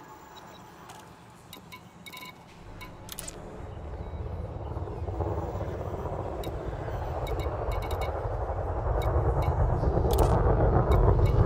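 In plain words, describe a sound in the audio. Short electronic interface clicks beep now and then.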